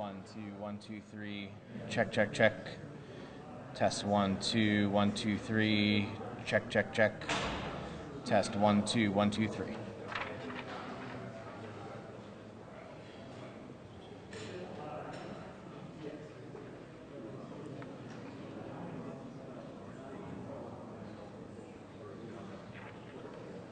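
A man speaks calmly into microphones, heard through a loudspeaker in an echoing room.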